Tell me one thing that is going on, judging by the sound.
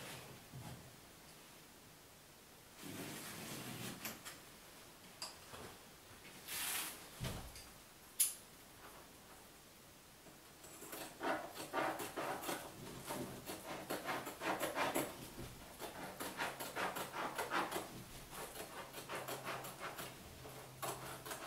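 Wallpaper rustles and crinkles as hands smooth it against a wall.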